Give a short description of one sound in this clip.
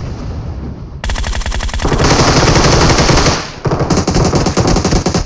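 An automatic rifle fires in rapid bursts in a video game.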